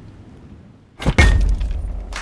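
A glass thumps down hard onto a table.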